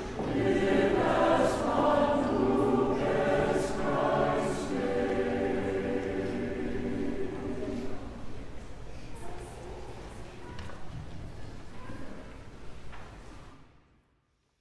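A large choir sings in a big echoing hall and the sound fades away.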